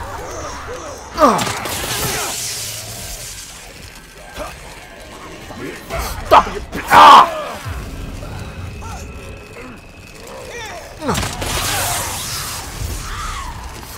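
Monsters growl and groan close by.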